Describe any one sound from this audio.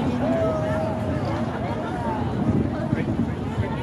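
Footsteps of many people shuffle along a pavement.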